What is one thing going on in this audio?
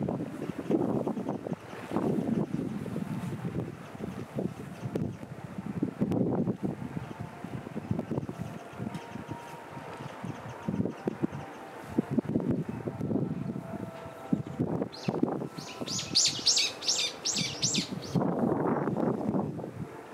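Small waves lap gently against rocks along the shore.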